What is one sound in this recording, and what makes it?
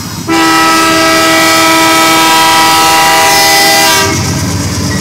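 A train horn blasts loudly and steadily close by.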